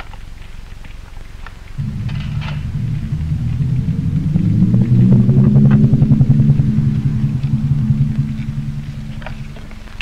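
A metal lid clinks and scrapes against a tin.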